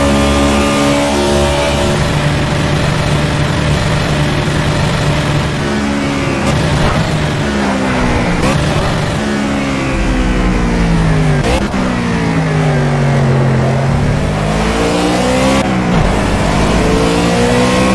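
A race car engine roars at high revs, dropping in pitch as it slows for a corner and then climbing again as it speeds up.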